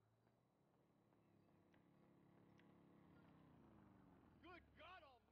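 A motorcycle engine hums and grows louder as the motorcycle approaches.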